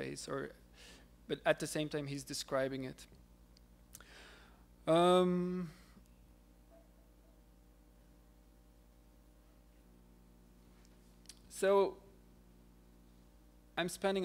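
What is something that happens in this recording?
A young man speaks calmly into a microphone, with long pauses.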